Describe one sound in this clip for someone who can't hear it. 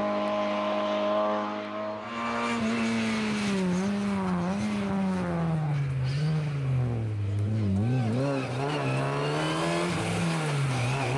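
A rally car engine roars, revving up and down as the car races past and shifts gears.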